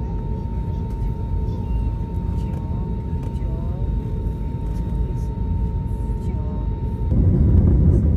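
Jet engines hum inside an airliner cabin as the plane taxis.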